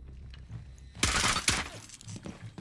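A rifle fires a loud shot that echoes.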